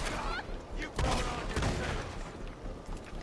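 A gunshot fires sharply and echoes.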